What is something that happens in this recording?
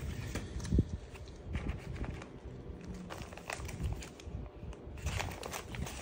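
A plastic bag crinkles under a hand.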